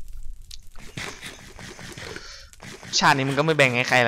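A game character munches on food.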